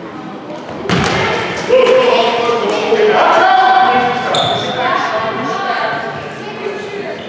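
Young boys shout and call out across an echoing gym.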